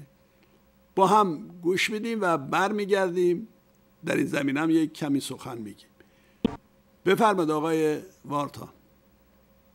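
An elderly man speaks calmly and clearly into a microphone.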